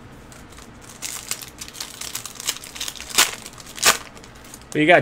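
Foil wrappers crinkle and tear as card packs are opened.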